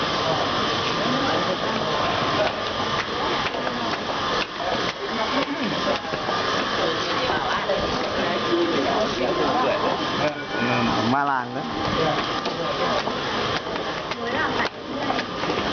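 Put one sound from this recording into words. Footsteps shuffle on stone stairs.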